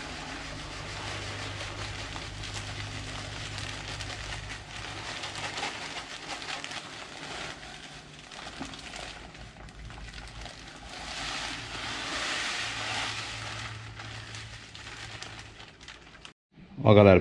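Grain pours and rattles into a metal bucket.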